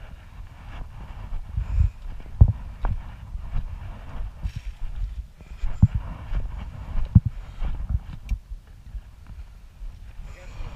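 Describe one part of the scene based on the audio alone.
Boots crunch and scrape on loose rocks.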